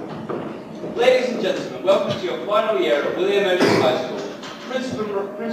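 A young man speaks loudly from a stage in an echoing hall.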